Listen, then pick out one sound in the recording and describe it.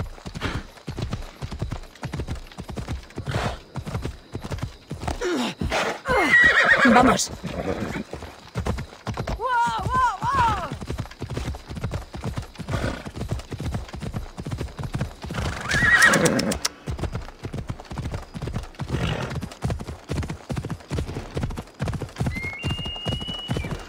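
Horse hooves thud steadily on grass and dirt.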